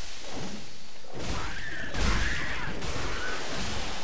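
A sword swings and strikes with a heavy thud.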